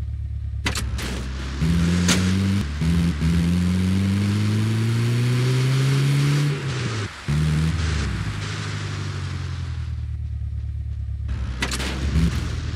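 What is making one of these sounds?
An engine hums steadily and revs up as a vehicle drives.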